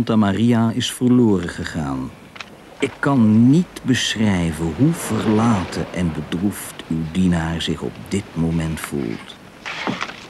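An elderly man speaks loudly and with feeling, close by.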